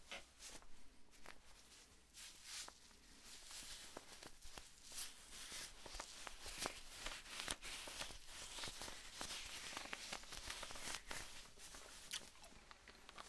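A plastic wrapper crinkles and crackles in a man's hands.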